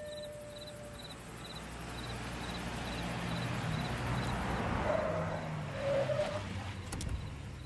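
A car engine rumbles as the car slowly approaches.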